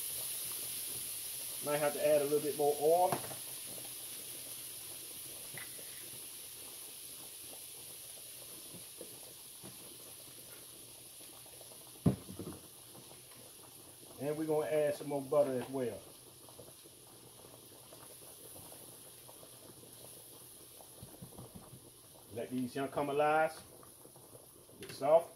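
Metal tongs scrape and stir food in a frying pan.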